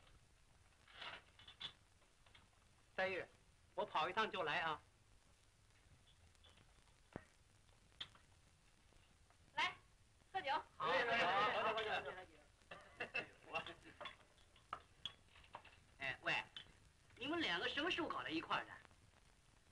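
Several men talk and laugh together nearby.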